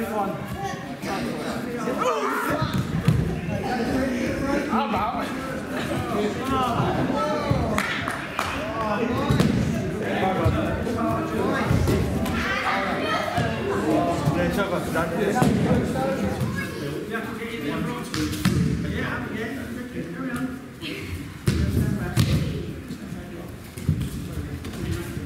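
Many voices of children and adults chatter and call out in a large echoing hall.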